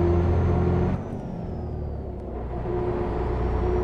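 A bus engine drops briefly as gears change, then pulls again.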